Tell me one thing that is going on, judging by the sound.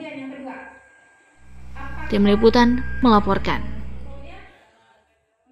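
A woman speaks through a microphone over loudspeakers in an echoing room.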